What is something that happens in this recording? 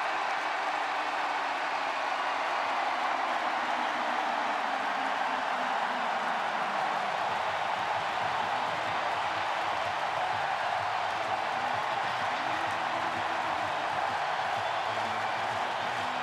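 A huge stadium crowd cheers and roars loudly.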